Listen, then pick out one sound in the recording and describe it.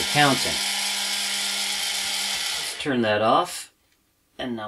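A small electric motor whirs steadily.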